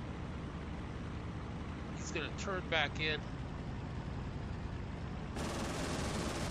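A radial piston engine of a fighter plane drones in flight, heard from the cockpit.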